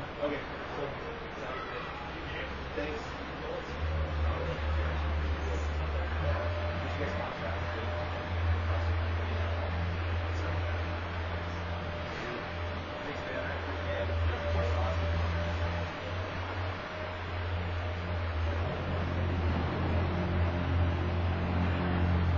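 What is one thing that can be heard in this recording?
An ice resurfacing machine's engine hums steadily in a large echoing arena.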